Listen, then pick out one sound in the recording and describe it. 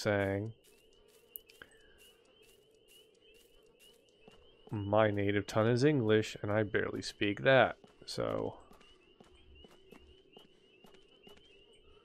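Footsteps walk on hard pavement.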